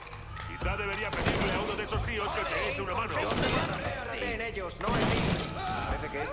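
A rifle fires rapid bursts of gunshots close by, echoing in a large hall.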